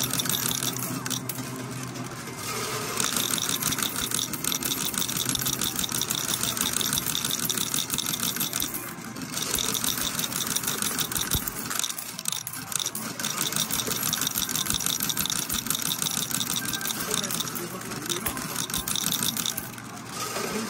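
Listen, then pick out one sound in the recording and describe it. Coins clatter and clink as a pusher machine shoves them along.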